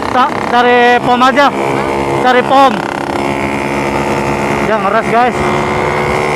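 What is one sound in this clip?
A motorcycle engine revs sharply in quick bursts.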